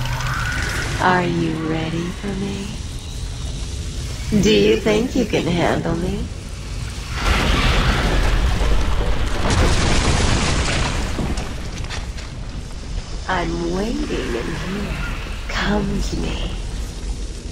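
A huge creature groans and growls loudly.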